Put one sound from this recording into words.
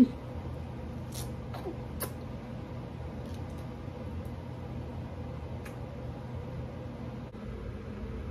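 A baby sucks and gulps softly from a bottle.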